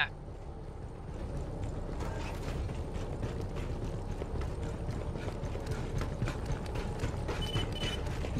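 Boots thud on a metal floor at a steady run.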